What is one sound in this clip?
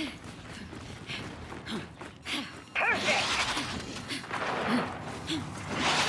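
Heavy armored footsteps thud quickly on hard ground.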